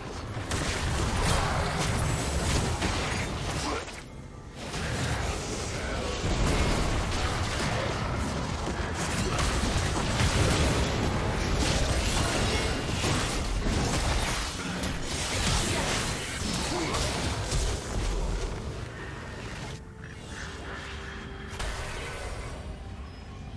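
Magic spells crackle and whoosh in a fast fantasy battle.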